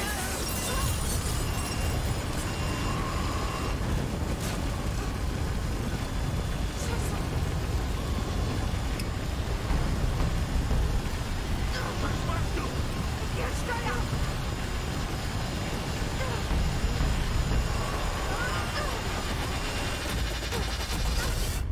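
Heavy rain and wind roar loudly.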